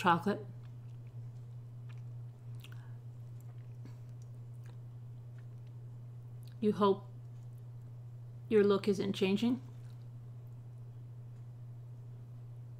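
A woman chews food.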